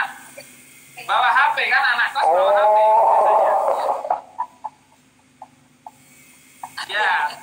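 Men laugh loudly over an online call.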